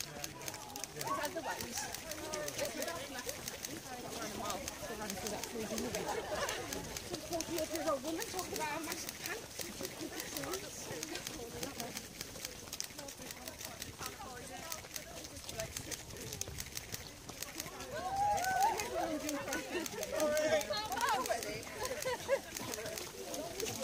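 Adults chat and call out in a crowd nearby, outdoors.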